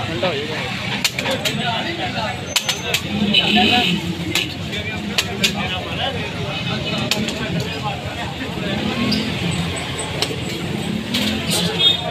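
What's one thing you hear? A metal spatula clinks and scrapes against the griddle.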